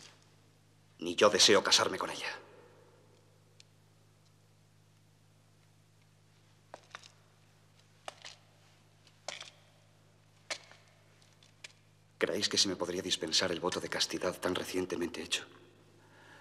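A man speaks firmly.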